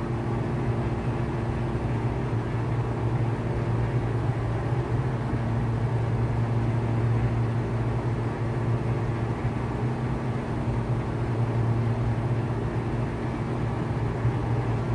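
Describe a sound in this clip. A small propeller plane's engine drones steadily from inside the cockpit.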